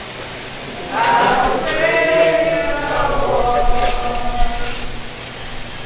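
A woman sings slowly with long held notes outdoors.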